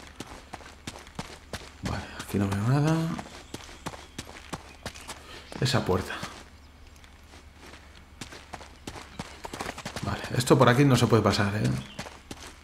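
Quick footsteps thud and scuff on ground.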